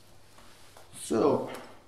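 A metal drum is set down with a loud clatter.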